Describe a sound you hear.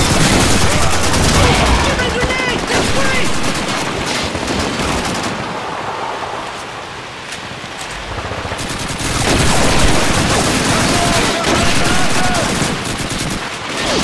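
A scoped bolt-action rifle fires single shots.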